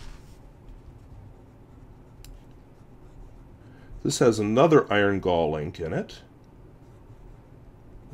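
A fountain pen nib scratches softly across paper.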